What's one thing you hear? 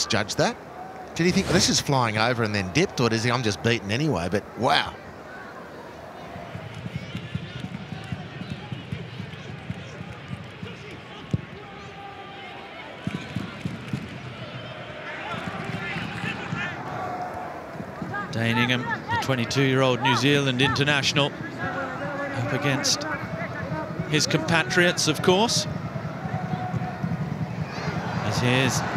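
A stadium crowd murmurs in the background.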